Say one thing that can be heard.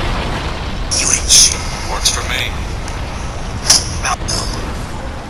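Sword strikes clang and slash sharply.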